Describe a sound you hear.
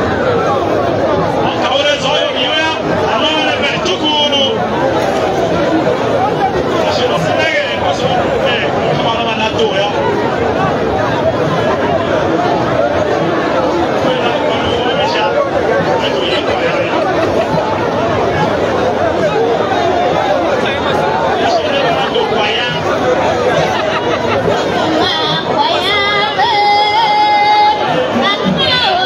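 A crowd of people talks and cheers loudly outdoors.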